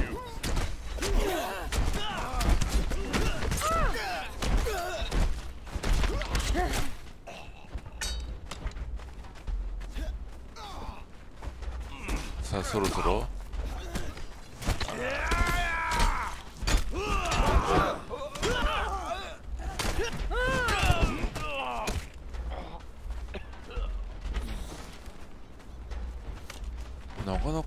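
Blades clash and strike in a fight.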